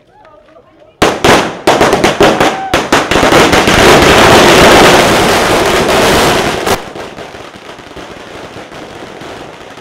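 A string of firecrackers bursts in a long, rapid, deafening crackle, then fades to a hiss.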